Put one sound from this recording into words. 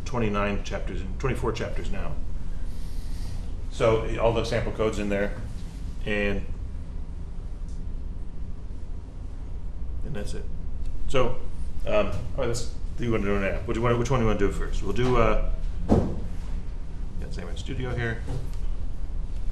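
A man talks calmly into a microphone, heard through a loudspeaker.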